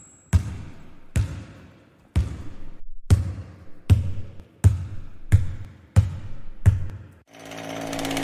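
A basketball bounces on a hard floor in a steady rhythm.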